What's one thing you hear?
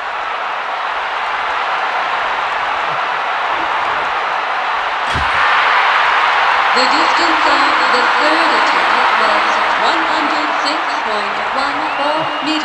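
A large crowd roars and cheers.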